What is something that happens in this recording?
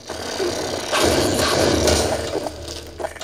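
A heavy gun fires a rapid burst.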